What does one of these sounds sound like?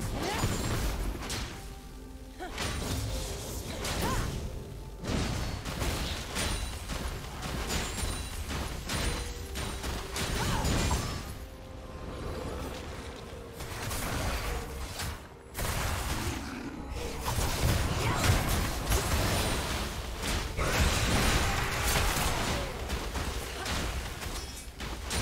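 Magic spells whoosh and crackle during a video game battle.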